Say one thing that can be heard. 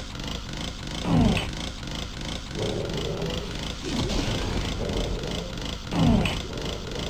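A monster lets out a deep, falling growl, several times.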